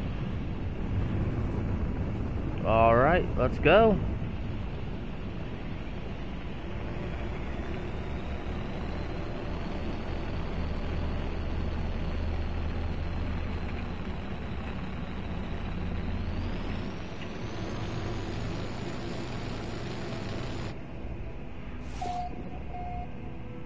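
A spacecraft engine hums with a low, steady roar.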